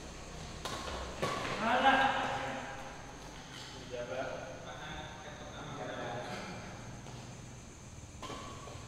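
A badminton racket smacks a shuttlecock in an indoor hall.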